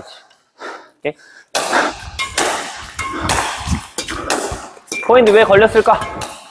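A racket strikes a shuttlecock with a sharp smack.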